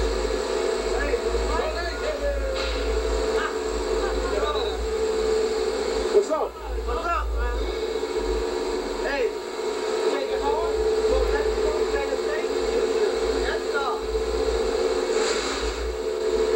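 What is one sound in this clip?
Several men talk and laugh casually nearby.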